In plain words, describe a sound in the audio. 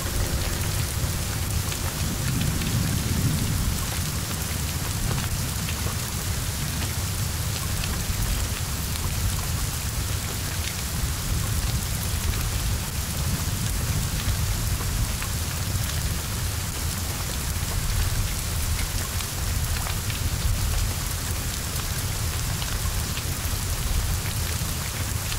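Flames roar and crackle loudly.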